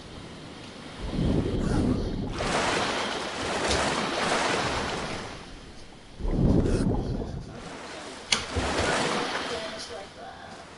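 A paddle splashes through water.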